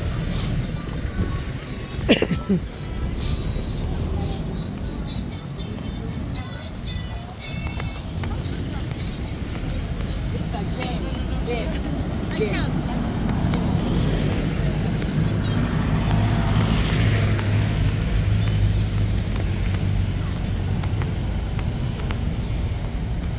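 Footsteps scuff along a pavement.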